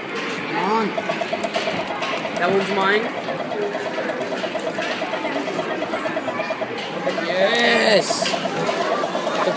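A ticket machine whirs and clicks rapidly as it feeds a strip of tickets.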